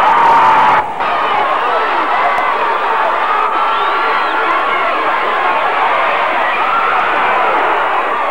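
A large crowd cheers and roars across an open stadium.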